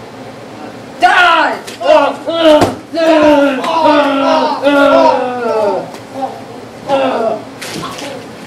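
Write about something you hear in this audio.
A young man shouts and cries out in pain.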